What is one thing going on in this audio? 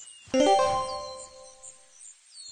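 Coins jingle with a bright chime.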